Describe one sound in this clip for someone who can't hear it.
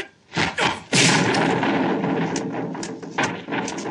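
A stone lantern cracks and shatters under a kick.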